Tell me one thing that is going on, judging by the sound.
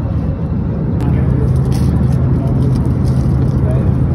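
A plastic water bottle crinkles in a hand.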